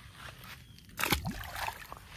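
A fish splashes into water close by.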